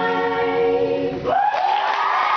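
Ukuleles ring out on a final strummed chord.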